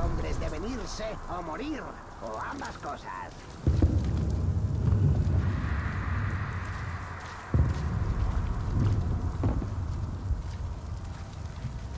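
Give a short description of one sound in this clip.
Footsteps thud on stone and rooftops.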